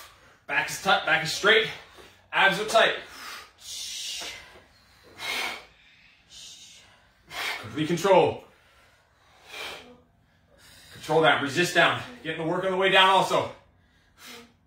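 A man speaks loudly and with energy, close by in an echoing room.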